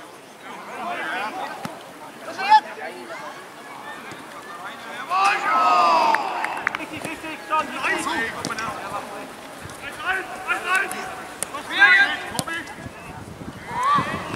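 Players shout to each other outdoors in the open.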